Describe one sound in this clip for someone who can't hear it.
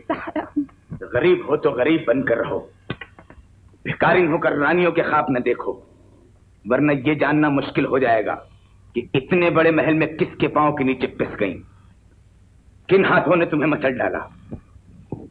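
A middle-aged man speaks in a deep, stern voice.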